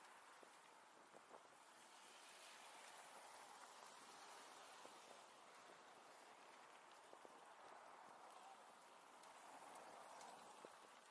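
Cars drive past on a road nearby.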